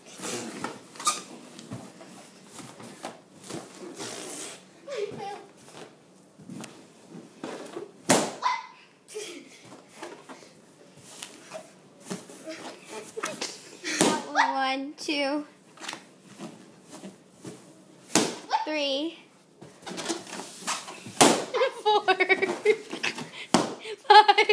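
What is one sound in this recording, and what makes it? A young girl sits on balloons and pops them with loud bangs.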